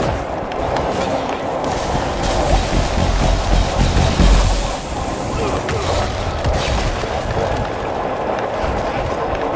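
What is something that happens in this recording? Game combat sounds of blows and explosions play with thumping low booms.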